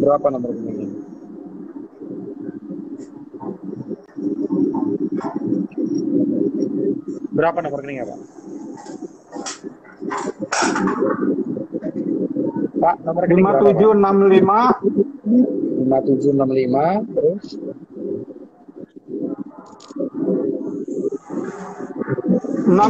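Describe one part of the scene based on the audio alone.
A young man talks calmly over an online call.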